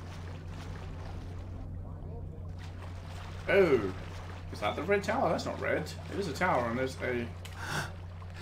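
Water sloshes gently as someone wades through it.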